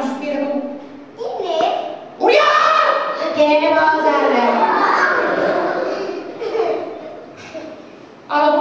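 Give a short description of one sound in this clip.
A woman speaks in an animated, high puppet voice in a large, echoing hall.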